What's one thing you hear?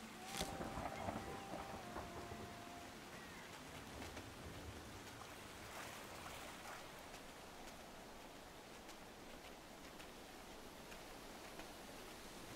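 Light paws patter quickly as a fox runs.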